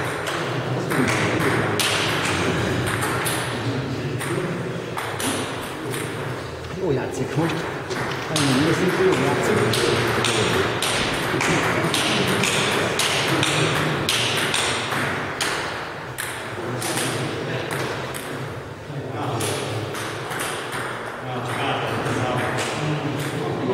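Ping-pong balls click on tables and paddles, echoing in a large hall.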